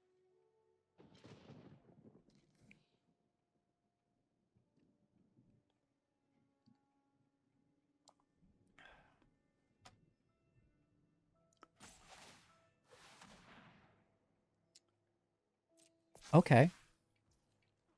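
A young man speaks briefly and casually, close to a microphone.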